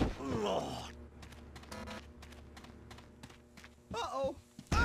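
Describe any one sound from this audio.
Footsteps thud on a hard floor and stairs.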